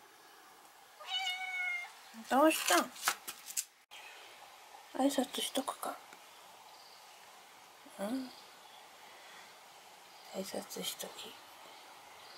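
A cat meows repeatedly.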